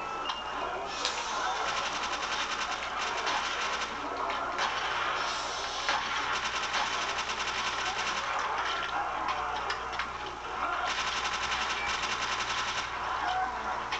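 Rapid gunfire from a video game rattles through a television speaker.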